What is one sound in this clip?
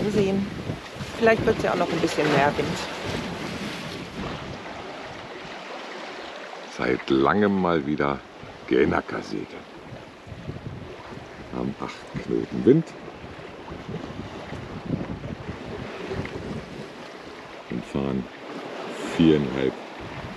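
Wind blows across the boat.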